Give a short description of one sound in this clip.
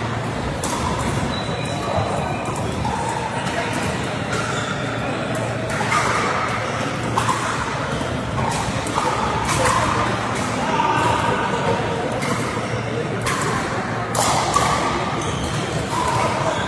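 Paddles strike plastic balls with sharp hollow pops, echoing in a large hall.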